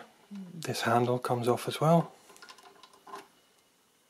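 A knob on a machine ratchets as it turns.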